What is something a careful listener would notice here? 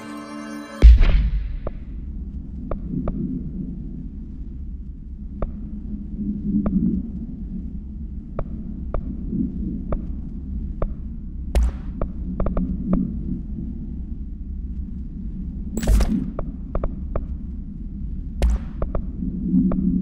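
Short interface clicks tick as menu selections change.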